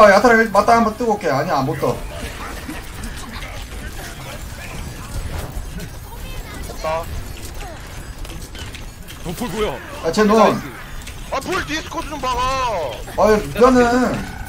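Gunfire and explosions crackle from a video game.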